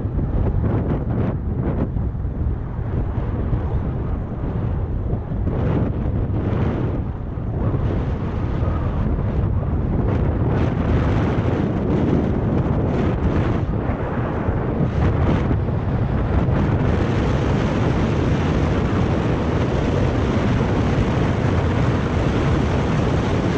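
Wind rushes loudly past a microphone outdoors.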